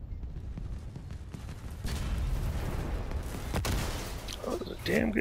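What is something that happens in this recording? Heavy gunfire and explosions rumble and crackle.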